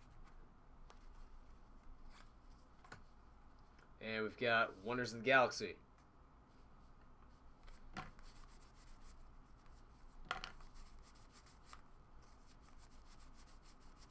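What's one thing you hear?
Trading cards rustle and flick as hands flip through them.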